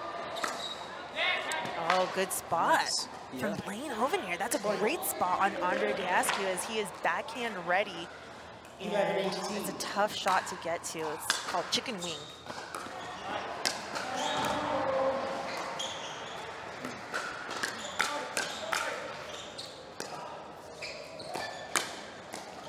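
A paddle smacks a plastic ball back and forth in sharp, quick pops.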